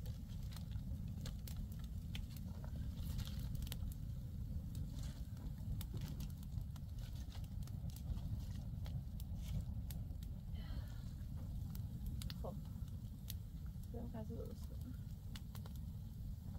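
A small wood fire crackles and pops.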